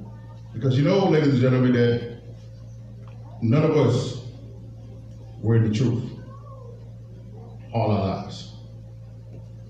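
A man speaks into a microphone in short bursts, heard through loudspeakers in an echoing hall.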